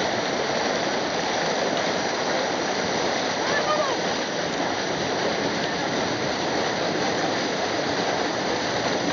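Water splashes as a person slides down a rocky chute.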